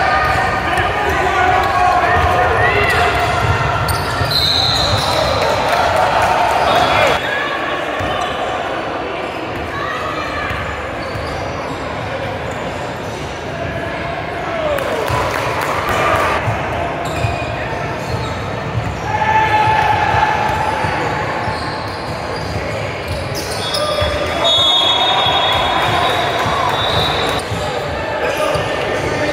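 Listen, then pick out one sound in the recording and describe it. A crowd of young people shouts and cheers in a large echoing hall.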